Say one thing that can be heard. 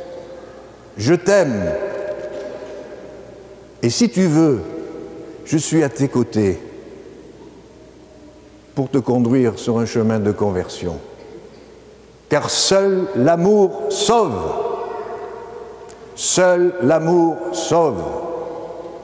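An elderly man speaks slowly and solemnly in a large echoing hall.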